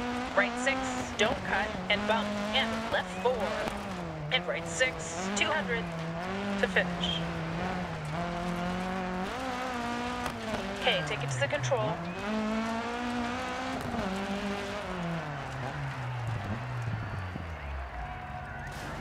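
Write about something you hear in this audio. Gravel sprays and crackles under tyres.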